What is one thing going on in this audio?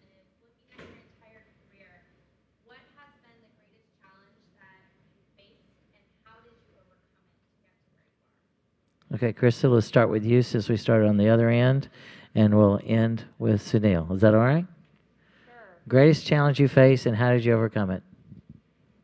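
A man speaks calmly into a microphone, heard over a loudspeaker.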